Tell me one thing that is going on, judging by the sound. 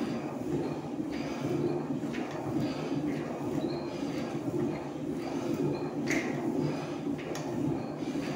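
An exercise machine whirs and thumps in a steady rhythm.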